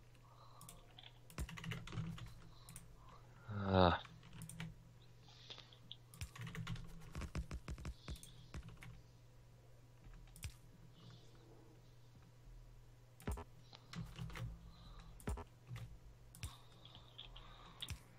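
Short clicks and soft thuds sound as track pieces are placed one after another.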